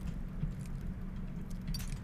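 A lock pick scrapes and clicks inside a metal lock.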